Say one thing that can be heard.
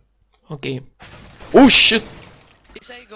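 A rifle fires a short burst of gunshots.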